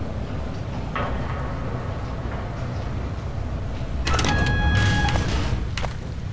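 An electronic console beeps and chirps.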